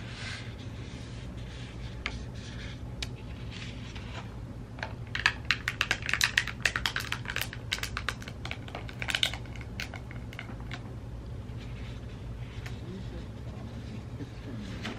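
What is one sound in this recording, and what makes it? A sheet of plastic film crinkles and crackles as it is handled.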